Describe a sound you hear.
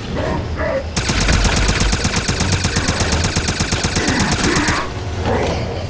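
A machine gun fires a long, rapid burst.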